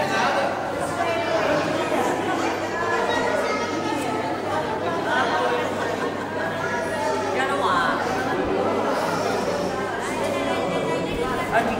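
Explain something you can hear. A button accordion plays a lively tune through a microphone.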